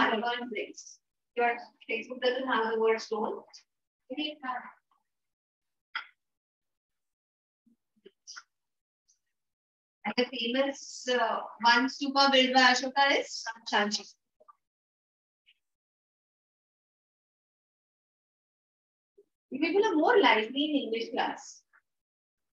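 A woman speaks calmly to a class, heard through a room microphone, in short bursts with pauses.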